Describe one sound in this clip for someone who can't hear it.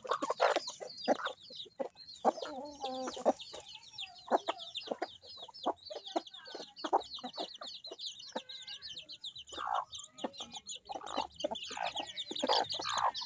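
Hens cluck and squawk.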